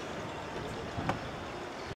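A car door shuts with a solid thud.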